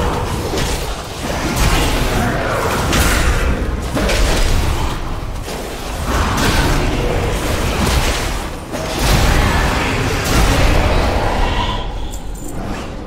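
Spell blasts and combat effects crash and whoosh loudly.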